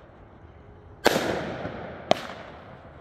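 A firework shell bursts with a sharp bang.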